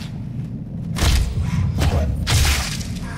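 Heavy blows land with wet, crunching thuds.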